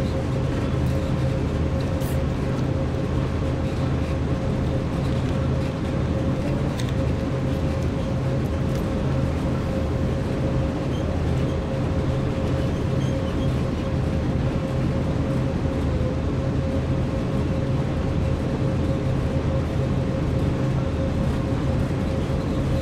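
Train wheels rumble along the rails.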